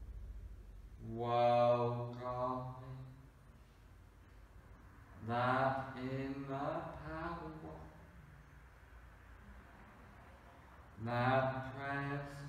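A man speaks calmly and slowly, close by, in a soothing voice.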